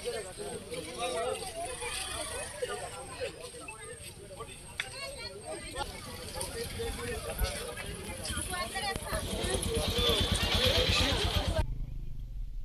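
A crowd of men chatter and call out outdoors.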